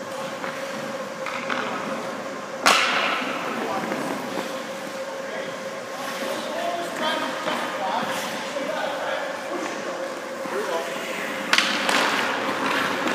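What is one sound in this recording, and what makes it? Ice skates scrape and hiss across ice in a large echoing hall.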